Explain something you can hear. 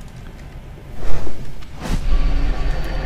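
A magic spell whooshes and hums with a crackle.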